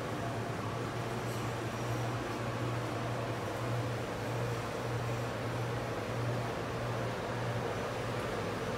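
A packaging machine hums steadily with a low pulsing drone.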